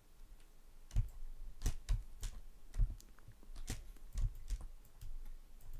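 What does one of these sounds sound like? A pickaxe chips at rock in quick, light taps.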